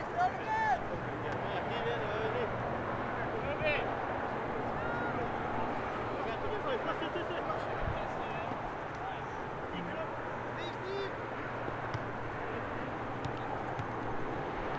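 Young men shout and call to each other across an open field outdoors.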